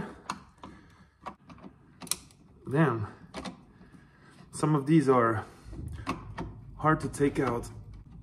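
A screwdriver clicks and scrapes against metal.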